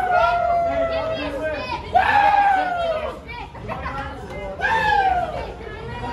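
A young woman cheers loudly close by.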